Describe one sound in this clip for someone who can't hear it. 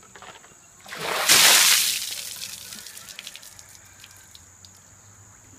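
Ice water splashes down in a sudden rush and drains away.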